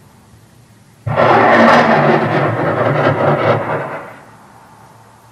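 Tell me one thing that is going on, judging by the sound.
A large explosion booms loudly across open ground and rumbles away.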